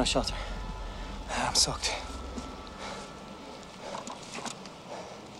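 A middle-aged man pants and groans heavily from effort, close by.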